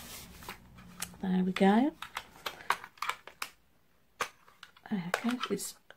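A small plastic lamp clicks as it is opened and handled.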